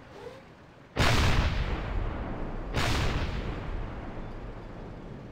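A tank cannon fires twice with loud booms that rumble away.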